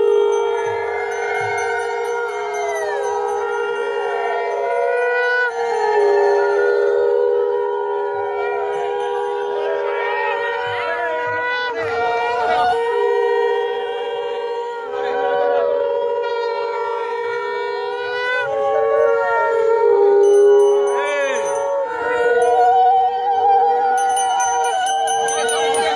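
A crowd of men and women chatters and calls out close by.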